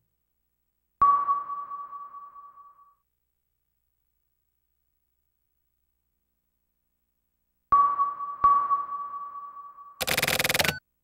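An electronic chime rings out and slowly fades.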